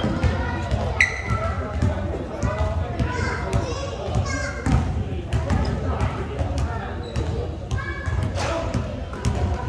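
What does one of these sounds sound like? Sneakers squeak on the floor.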